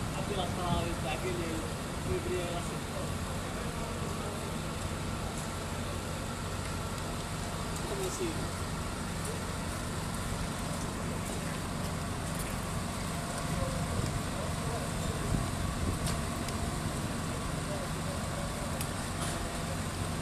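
A fire engine's motor rumbles steadily nearby.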